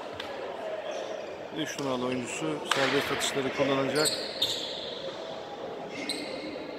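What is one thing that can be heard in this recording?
Spectators murmur quietly in a large echoing hall.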